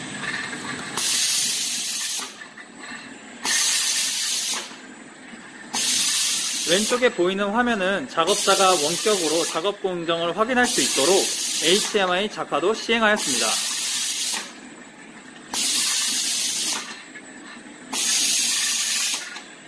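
Compressed air hisses in short bursts.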